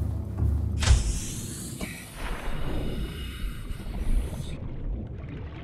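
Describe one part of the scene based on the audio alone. Water splashes and bubbles loudly as a diver plunges in.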